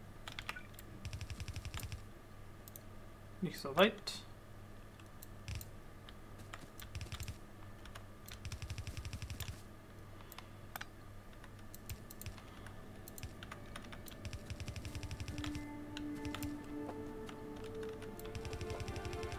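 Footsteps patter quickly on the ground in short bursts.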